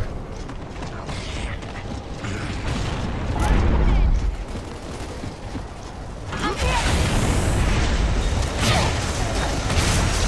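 Heavy boots thud as a soldier runs over rough ground.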